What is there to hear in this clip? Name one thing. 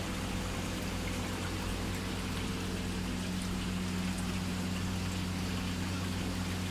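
Aquarium pumps hum steadily.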